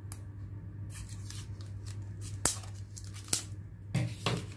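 Scissors snip through thin cardboard.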